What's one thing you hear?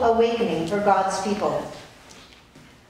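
Women sing together in an echoing hall, then fall quiet.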